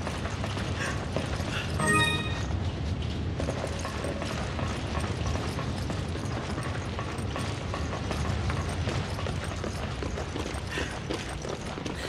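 Footsteps thud on a metal walkway.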